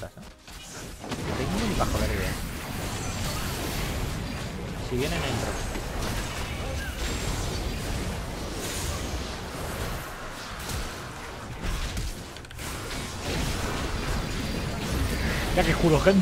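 Game spell effects whoosh and crackle in a fast battle.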